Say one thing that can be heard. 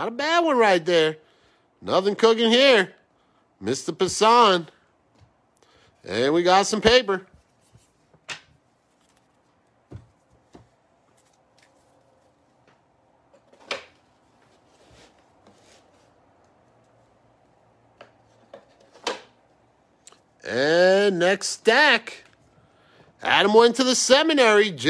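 Stiff trading cards rustle and slide as a hand flips through a stack.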